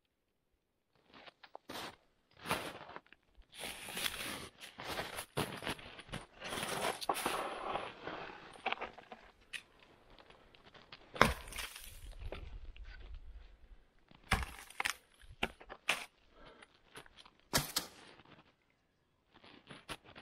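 Boots crunch in snow.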